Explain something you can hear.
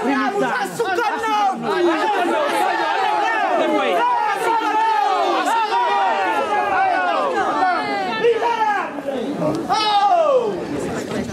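An elderly woman wails a loud lament close by.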